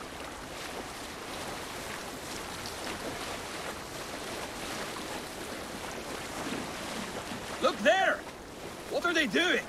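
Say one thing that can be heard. Water splashes and swishes against a boat's hull as it glides along.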